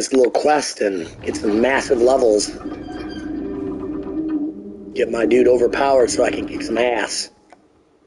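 A heavy stone door grinds slowly open.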